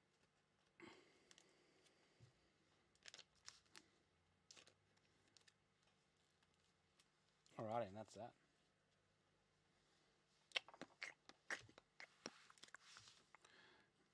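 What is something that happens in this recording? Card packs and plastic wrappers rustle and crinkle in hands.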